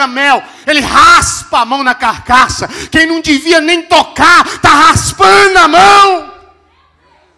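A man preaches loudly and with animation into a microphone, heard through loudspeakers in a large hall.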